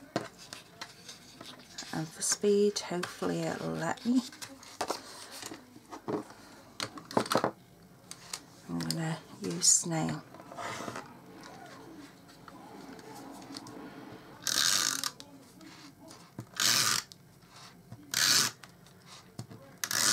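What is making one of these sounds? Sheets of paper rustle and slide across a table.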